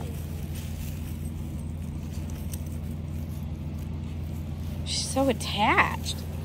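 Footsteps rustle softly on grass.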